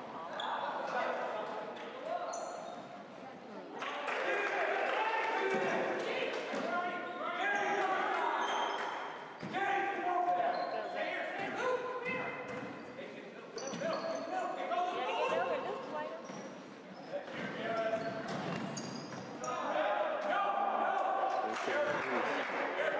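Basketball players' sneakers squeak on a hardwood floor in a large echoing gym.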